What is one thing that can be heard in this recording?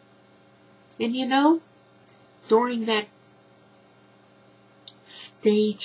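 A middle-aged woman speaks calmly and close to a microphone, in short bursts.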